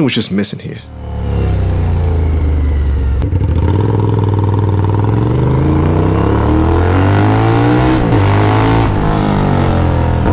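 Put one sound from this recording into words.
A motorcycle engine roars and revs up and down as it rides along.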